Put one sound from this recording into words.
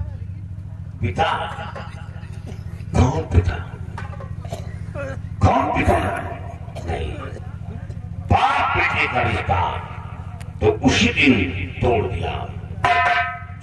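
A second man answers in a raised voice through a microphone.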